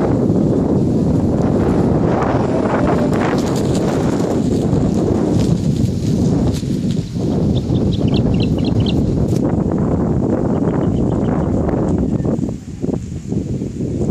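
Wind rushes and buffets loudly outdoors.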